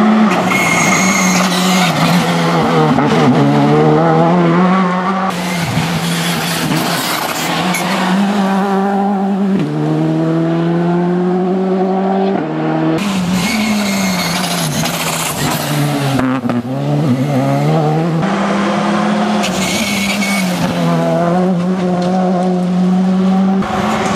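Tyres hiss and scrub on tarmac through the bends.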